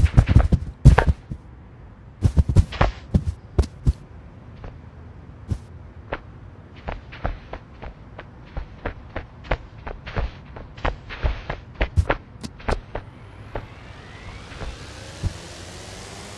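Footsteps tap quickly on a hard floor.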